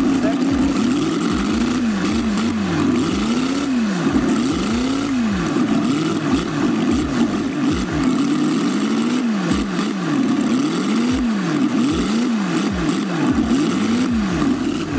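A small model engine revs up and down over and over.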